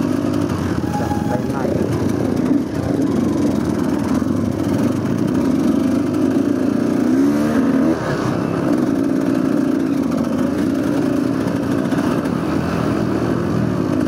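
Other dirt bike engines rev nearby.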